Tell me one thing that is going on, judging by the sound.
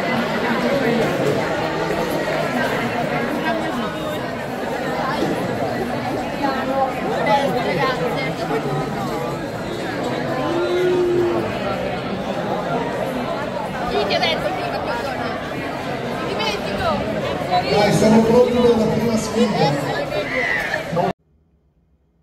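Children shout and call out excitedly.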